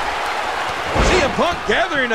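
A wrestler slams onto the ring mat with a heavy thud.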